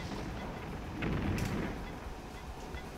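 An explosion bursts in a video game.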